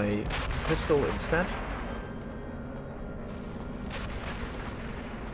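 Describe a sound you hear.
A deep rumble lingers after an explosion.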